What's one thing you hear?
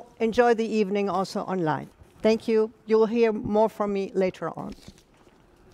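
A middle-aged woman speaks into a microphone.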